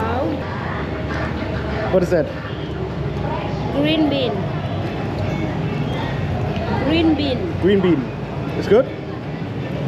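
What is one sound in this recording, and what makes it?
A young woman talks nearby with animation.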